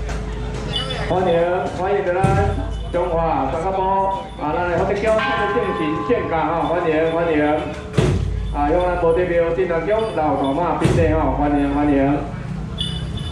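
Music with singing plays loudly.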